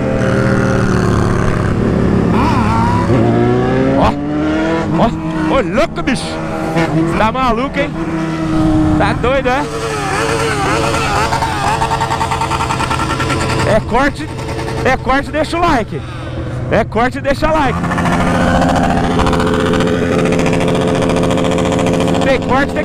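A motorcycle engine hums and revs up and down nearby.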